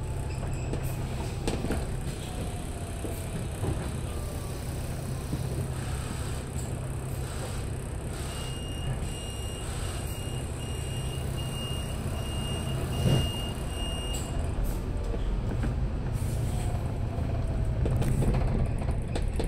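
A bus engine rumbles steadily nearby.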